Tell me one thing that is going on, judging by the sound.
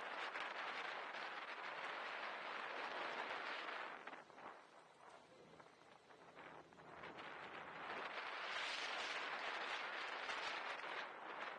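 Wind rushes loudly past a microphone on a moving vehicle, easing off briefly before rising again.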